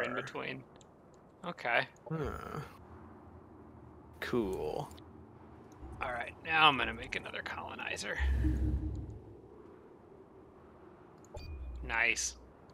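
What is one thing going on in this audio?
A young man talks casually into a microphone, close up.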